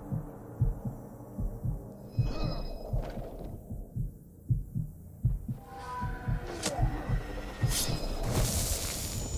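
Heavy footsteps thud on stone at a steady pace.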